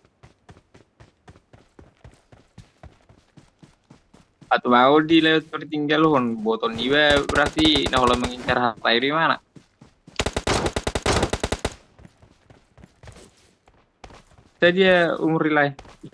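Footsteps patter quickly and evenly on the ground.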